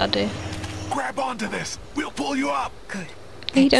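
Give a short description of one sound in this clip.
A man calls down urgently from above.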